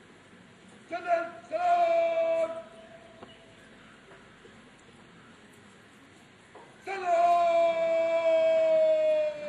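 A man shouts long, drawn-out drill commands outdoors.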